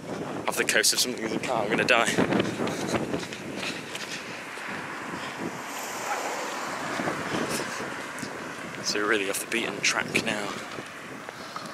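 A young man talks with animation close to the microphone, outdoors.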